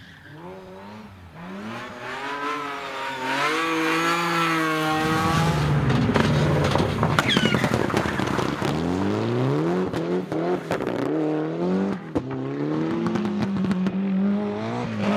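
A rally car engine roars and revs hard, rising and falling in pitch.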